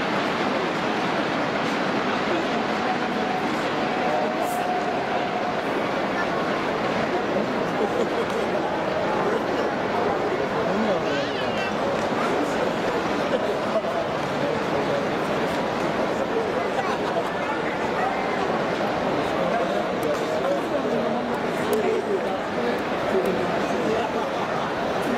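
A large crowd cheers and chants loudly in a big echoing stadium.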